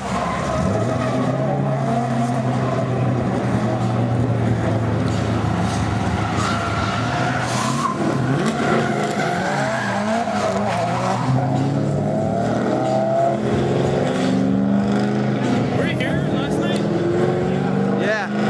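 A race car engine revs hard and roars while drifting.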